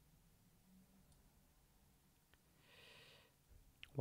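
A golf ball is struck softly with a putter.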